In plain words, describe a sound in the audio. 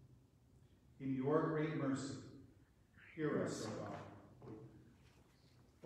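A man speaks calmly into a microphone in a reverberant room.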